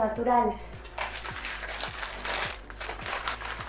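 A paper packet rustles in a young woman's hands.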